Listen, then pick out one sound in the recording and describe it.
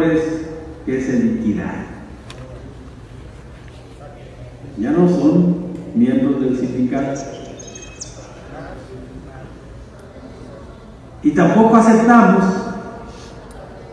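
A middle-aged man speaks into a microphone in bursts, with pauses, in an echoing hall.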